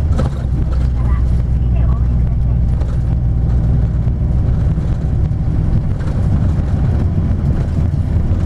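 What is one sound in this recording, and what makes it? A vehicle's engine hums low and steady from inside as it drives along a street.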